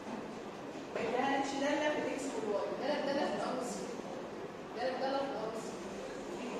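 A woman speaks clearly and explains.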